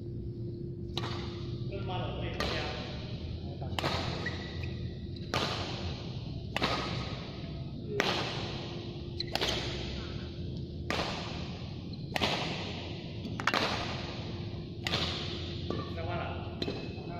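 Badminton rackets smack a shuttlecock back and forth in a large echoing hall.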